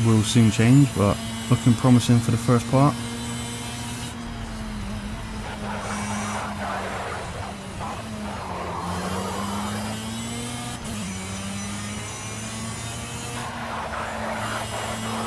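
A kart engine drones steadily, its pitch dipping and rising through the corners.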